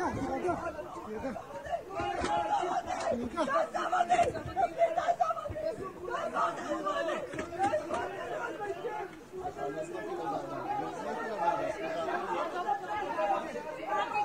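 A crowd of men shout and argue loudly close by.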